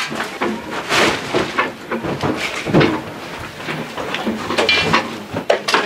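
A hand screwdriver turns a screw with faint creaks.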